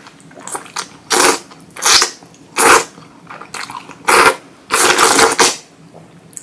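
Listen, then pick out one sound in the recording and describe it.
A young woman chews wetly, close up.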